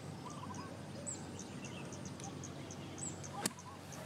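A club splashes through sand.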